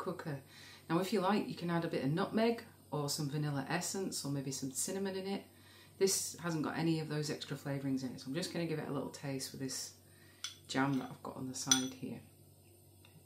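A woman talks calmly and close up.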